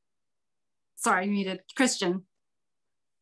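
A woman speaks brightly over an online call.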